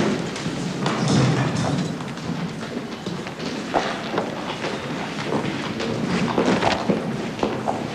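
Footsteps climb wooden stairs in a large echoing hall.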